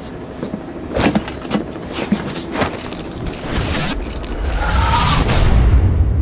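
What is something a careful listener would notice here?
Boots knock and scuff on a metal floor.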